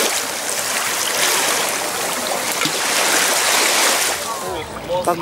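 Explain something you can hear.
Small waves lap gently against a pebbly shore.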